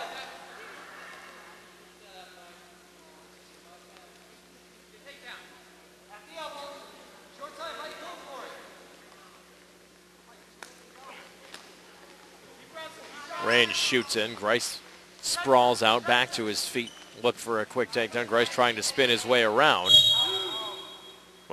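Wrestlers scuffle and thump on a mat.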